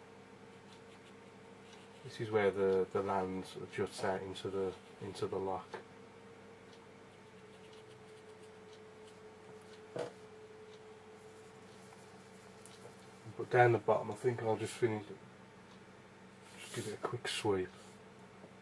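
A brush strokes softly across paper.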